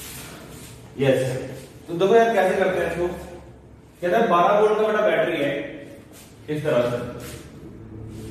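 A man speaks calmly and clearly nearby, as if lecturing.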